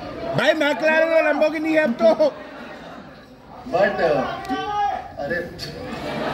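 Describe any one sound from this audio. A man talks with animation on a microphone.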